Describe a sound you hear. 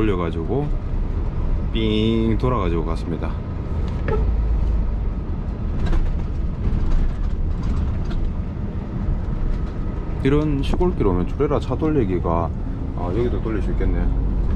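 Tyres hum on an asphalt road.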